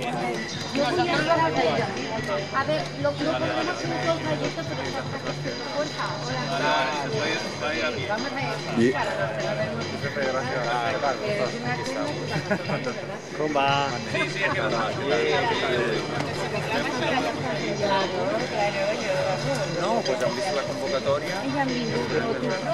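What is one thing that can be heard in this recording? A group of men and women chat and talk over one another nearby, outdoors.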